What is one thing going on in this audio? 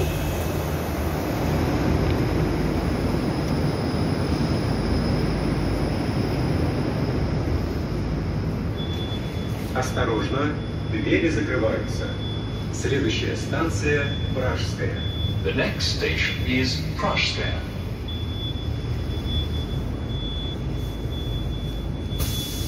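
A subway train rumbles and hums steadily.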